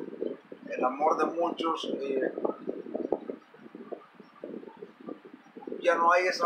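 A man speaks calmly and close to a microphone.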